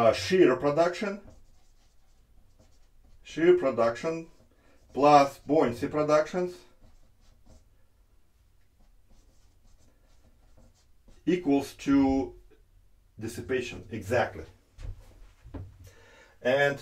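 A middle-aged man speaks calmly, pausing now and then, as if lecturing.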